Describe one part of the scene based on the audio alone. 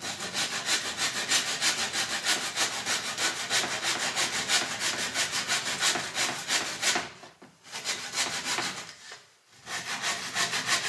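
A hand tool rasps on a wooden board in quick strokes.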